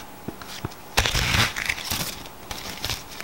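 Cards ruffle in a quick burst as a deck is sprung.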